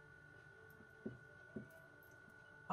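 A small container is shaken and tapped over a plate.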